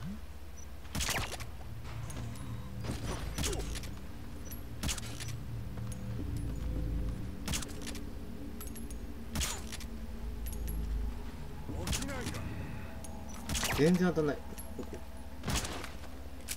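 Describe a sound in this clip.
A silenced pistol fires muffled shots at a slow, steady pace.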